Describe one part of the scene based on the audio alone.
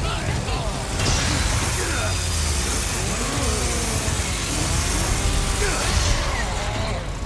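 A chainsaw roars loudly.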